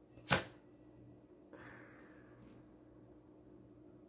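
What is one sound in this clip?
A playing card slides softly across a wooden table.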